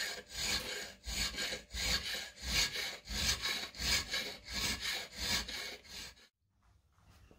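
A metal file rasps back and forth across metal in quick, rhythmic strokes.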